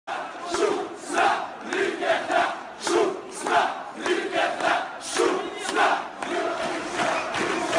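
A large crowd of young men chants loudly in rhythm outdoors.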